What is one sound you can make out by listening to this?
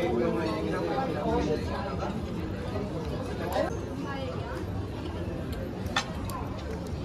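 A fork scrapes and clinks against a plate.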